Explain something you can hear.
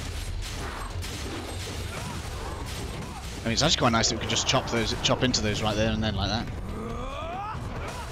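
Blades slash and strike hard in a fast fight.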